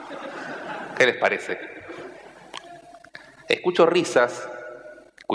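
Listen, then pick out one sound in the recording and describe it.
A man speaks to an audience through a microphone in a large hall.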